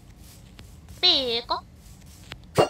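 A small cartoon creature lets out a high, squeaky cry.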